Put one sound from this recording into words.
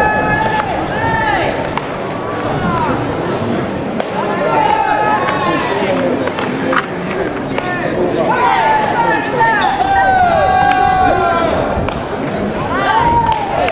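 Young men call out to each other across an open outdoor field.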